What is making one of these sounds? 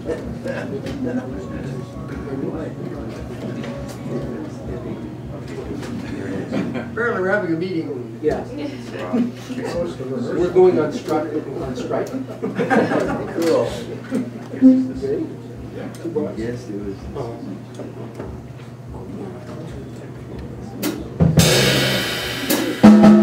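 A jazz band plays.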